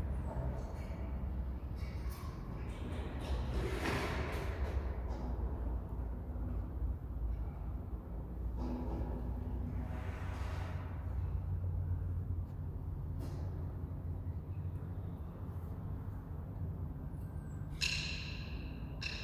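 A brass band plays a tune in a large echoing hall.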